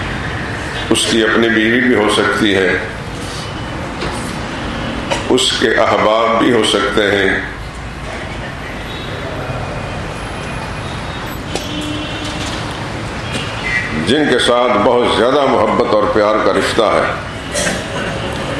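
A middle-aged man speaks slowly and solemnly into a microphone, with long pauses.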